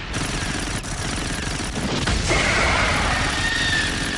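Rifles fire.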